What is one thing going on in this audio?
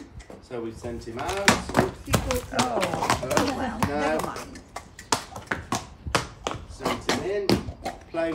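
Horse hooves clop on hard ground.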